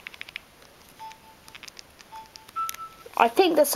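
A handheld game console beeps softly.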